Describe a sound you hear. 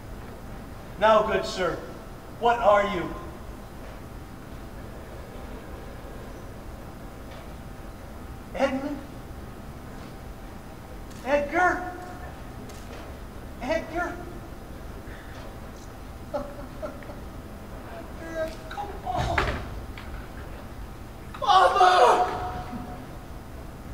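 A man speaks loudly in short, dramatic bursts in an echoing room.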